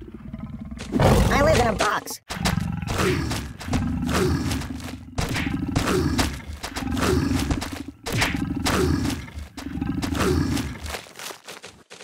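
A lion growls and roars fiercely.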